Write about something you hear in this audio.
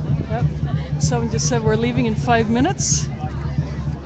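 A woman speaks loudly nearby.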